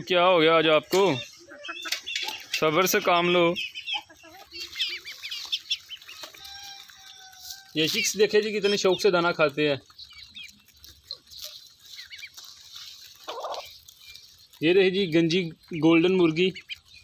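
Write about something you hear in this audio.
Hens cluck and squawk loudly close by.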